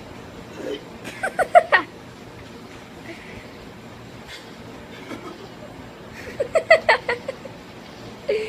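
A young woman laughs loudly in short bursts nearby.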